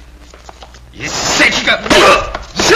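Men scuffle and grunt in a fight.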